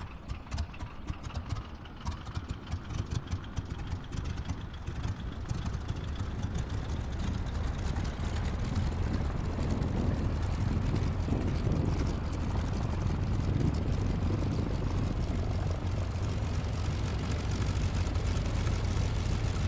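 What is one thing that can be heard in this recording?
A propeller engine sputters at idle, then runs up to a steady, louder drone.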